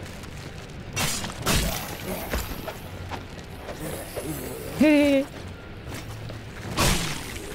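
A sword swishes and clangs in a fight.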